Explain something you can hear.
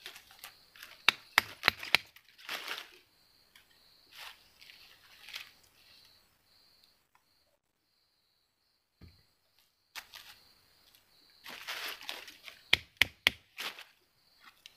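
Sharp clicks and snaps come from twigs breaking on the ground.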